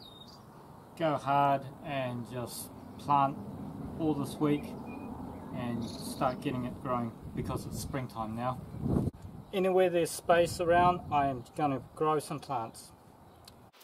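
A young man talks calmly and clearly, close by.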